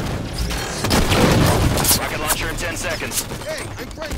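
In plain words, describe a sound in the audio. An automatic rifle fires rapid bursts in a video game.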